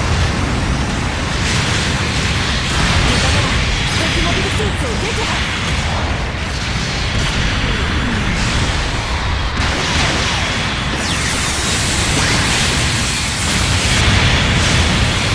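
Laser beams fire and zap repeatedly.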